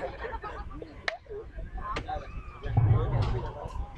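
A group of young men cheer and shout.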